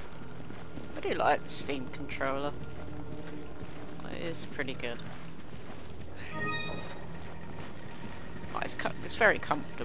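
A young woman speaks in short bursts close to a microphone.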